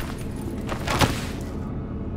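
A heavy thud of a body hitting the ground.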